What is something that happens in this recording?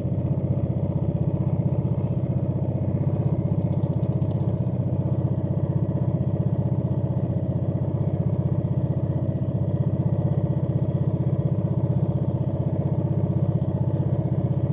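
A small boat engine chugs steadily and rapidly up close.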